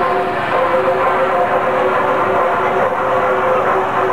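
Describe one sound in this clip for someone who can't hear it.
A flute plays a melody.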